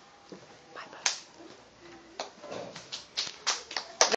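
Children clap their hands sharply.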